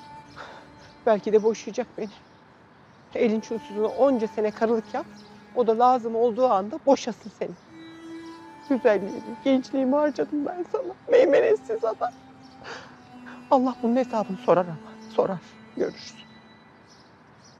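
A middle-aged woman speaks close by in a tearful, pleading voice.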